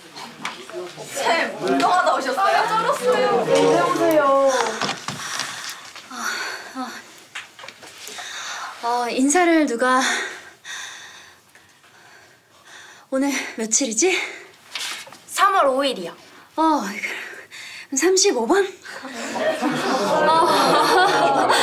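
Teenage students laugh and chatter together.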